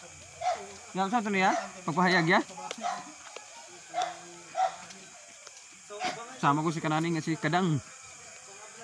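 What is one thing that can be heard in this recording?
A young man talks with animation nearby.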